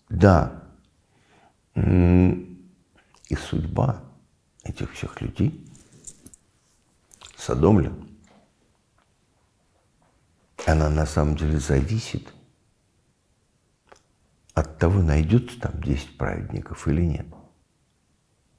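An elderly man speaks calmly and thoughtfully, close to a microphone, with pauses.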